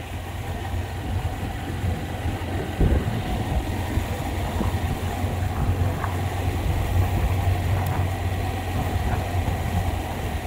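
Tyres roll over a dirt road.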